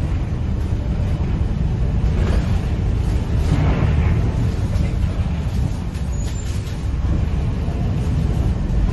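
Rain patters lightly on a window.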